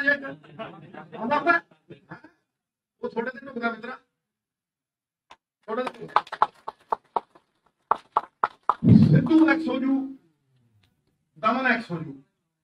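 A man speaks forcefully into a microphone, with pauses.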